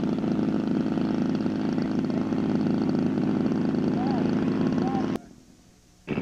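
A model airplane engine drones steadily and loudly close by.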